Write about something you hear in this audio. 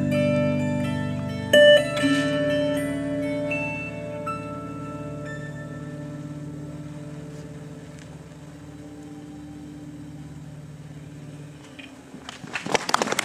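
An electric lap steel guitar rings out with sustained, gently fading notes.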